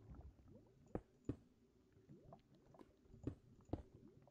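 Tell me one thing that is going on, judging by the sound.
Stone blocks are set down with short, dull knocks.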